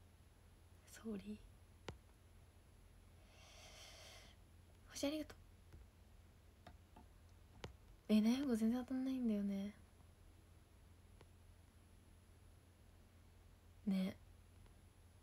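A young woman speaks softly in short bursts, close to a microphone.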